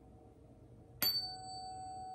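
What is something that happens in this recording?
A tuning fork is struck with a sharp tap.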